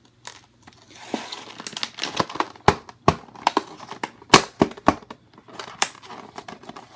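Stiff plastic packaging crinkles and clicks as it is handled close by.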